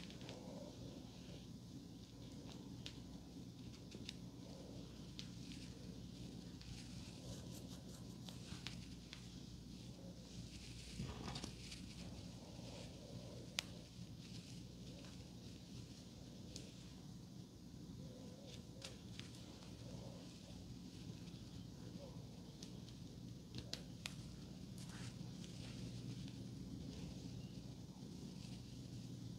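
Hands rustle softly through hair close to a microphone.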